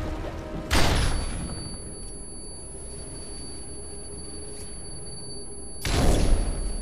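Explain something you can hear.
A high, steady ringing tone follows the bang.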